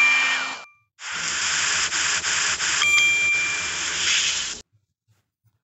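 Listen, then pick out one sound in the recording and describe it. Water sprays from a shower head in a steady hiss.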